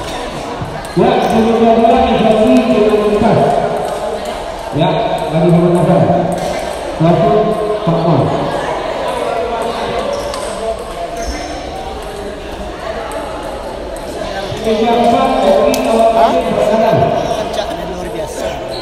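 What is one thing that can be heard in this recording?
Men talk loudly nearby in a large echoing hall.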